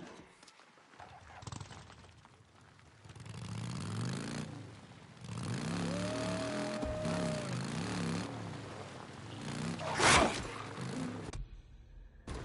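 A motorcycle engine revs and roars over rough ground.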